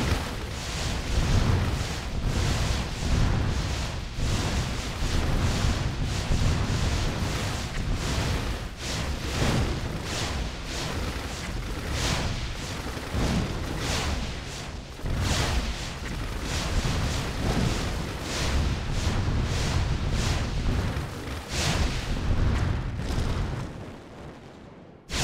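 Heavy guns boom in rapid, overlapping bursts.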